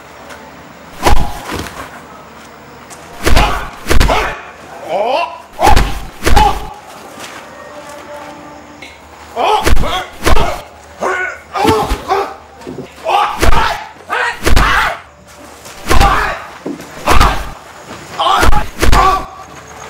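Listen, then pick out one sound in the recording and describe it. Punches land with loud thuds.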